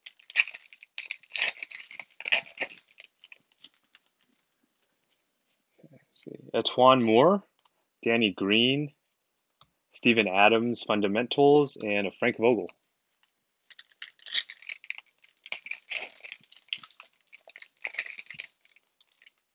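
A plastic wrapper crinkles and rustles between hands.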